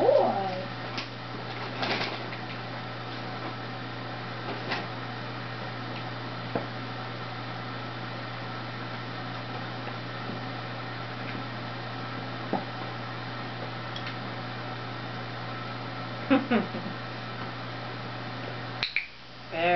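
A dog's paws knock against a plastic basket as it steps in and out.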